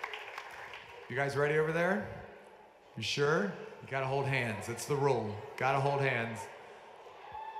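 A man speaks through a microphone over loudspeakers in a large echoing hall.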